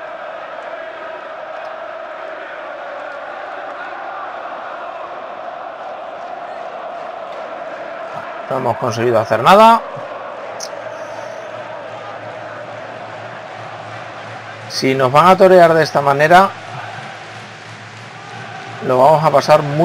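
A large stadium crowd murmurs and chants steadily in the distance.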